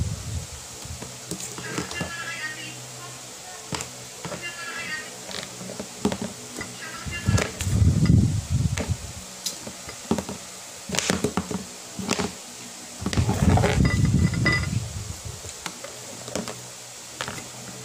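Fingers scrape and tap on a plate.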